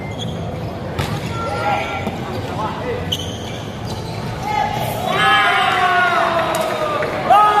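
A volleyball is struck hard with sharp slaps in an echoing hall.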